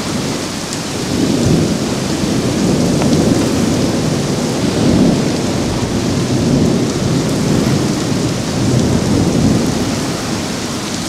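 Strong wind roars and gusts.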